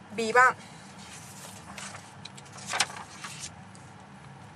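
Paper rustles as a sheet is moved.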